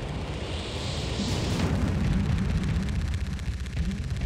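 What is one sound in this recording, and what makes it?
Heavy crashing thuds boom loudly.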